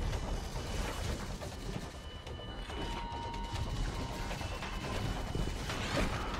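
Gunfire and explosions from a video game crackle and boom steadily.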